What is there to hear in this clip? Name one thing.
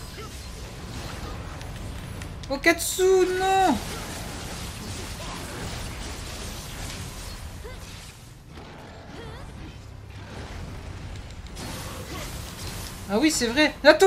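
Swords clash and slash in quick strikes.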